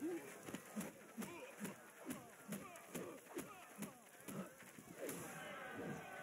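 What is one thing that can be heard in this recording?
Heavy punches land with thudding smacks.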